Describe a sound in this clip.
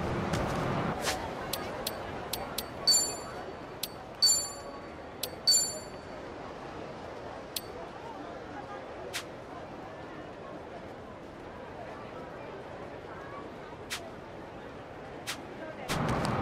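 Short menu clicks and chimes sound now and then.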